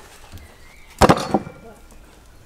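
A heavy carcass thuds onto a wooden table.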